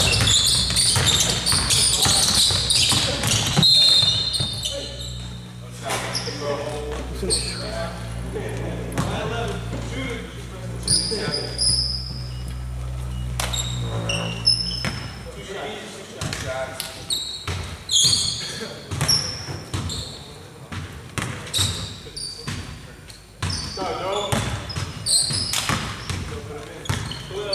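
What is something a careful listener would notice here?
Basketball shoes squeak sharply on a wooden court.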